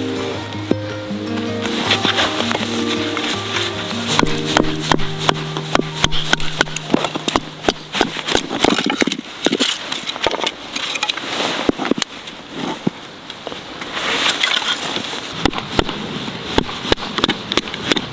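A knife scrapes and shaves thin strips off dry wood.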